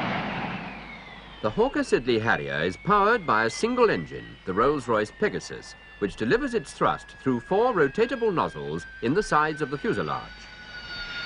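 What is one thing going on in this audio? A Harrier jump jet's turbofan whines and winds down on the ground.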